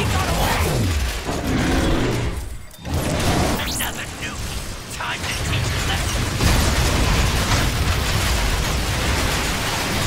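Electric bolts crackle and zap.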